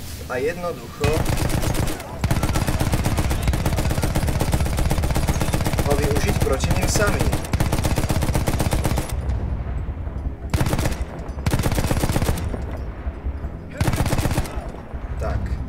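A machine gun fires in long rapid bursts.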